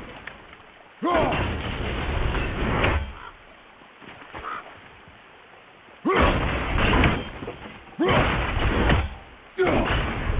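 An axe whooshes through the air when thrown.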